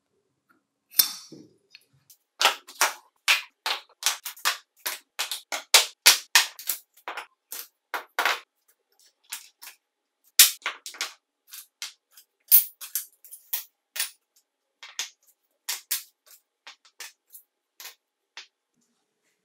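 Metal parts clatter and knock as they are set down on a wooden table.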